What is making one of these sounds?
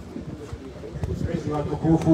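A second elderly man speaks loudly into a microphone over a loudspeaker.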